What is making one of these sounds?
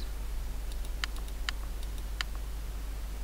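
Short game menu clicks sound a few times.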